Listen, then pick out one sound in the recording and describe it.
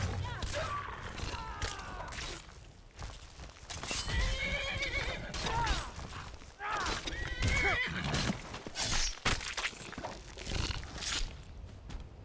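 Weapons strike with sharp blows.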